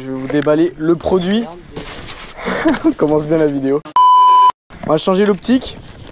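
Cardboard and plastic packing rustle as a box is unpacked.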